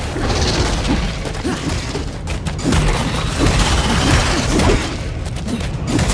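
Blades strike with sharp impacts.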